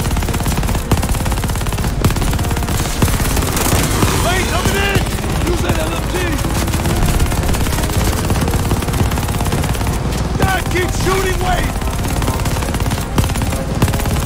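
Explosions boom and thud nearby.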